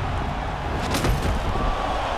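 A kick lands on a body with a sharp thud.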